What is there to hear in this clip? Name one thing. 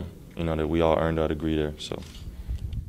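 A young man speaks calmly into microphones up close.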